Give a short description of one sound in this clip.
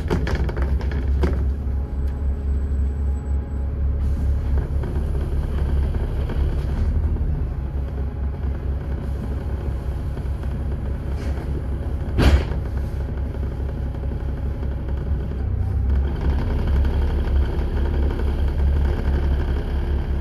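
A vehicle engine rumbles low and steadily while driving.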